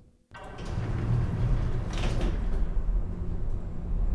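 Heavy metal doors slide shut with a whoosh.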